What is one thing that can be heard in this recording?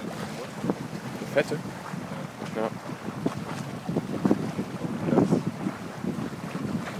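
Water splashes and rushes along a moving boat's hull.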